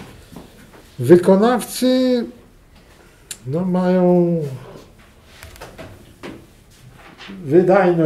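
An elderly man speaks slowly and calmly, close by, in short drawn-out phrases.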